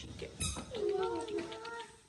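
A plastic bottle cap is twisted open.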